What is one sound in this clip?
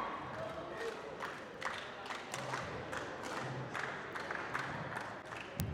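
Scattered hands clap in a large hall.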